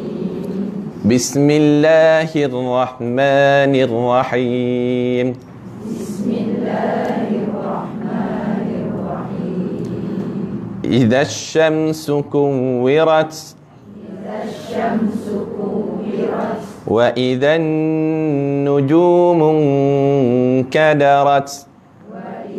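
A man chants a long melodic recitation through a microphone.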